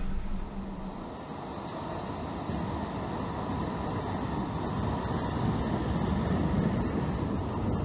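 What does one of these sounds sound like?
A train pulls into a station with a rising, rolling rumble.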